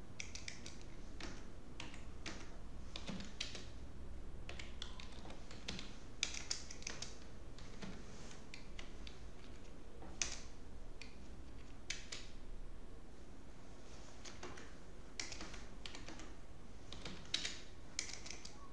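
Keys clatter as someone types on a keyboard in short bursts.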